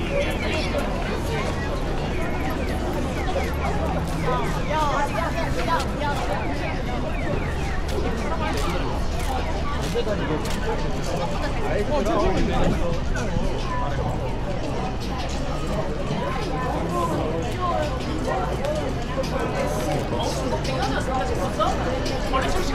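A crowd of people chatter and talk nearby outdoors.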